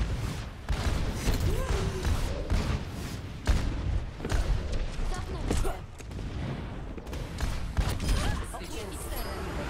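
Heavy guns fire in rapid bursts with loud explosions.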